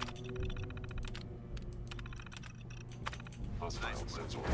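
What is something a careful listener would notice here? Computer keys clatter in quick bursts.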